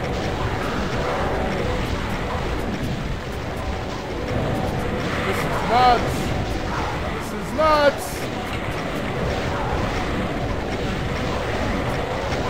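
Fiery explosions boom and roar.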